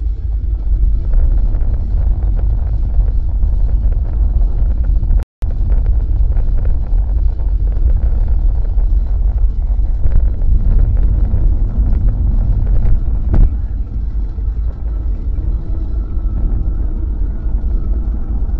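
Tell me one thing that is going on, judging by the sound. Tyres rumble low over the road.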